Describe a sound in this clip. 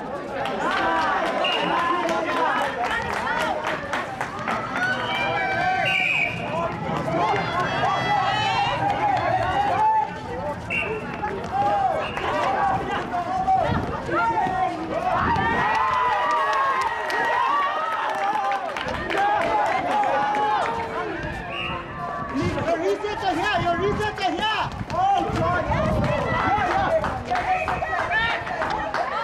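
Young women call out to each other across an outdoor court.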